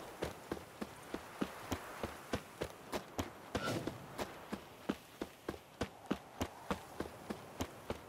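Quick footsteps run steadily on a dirt path.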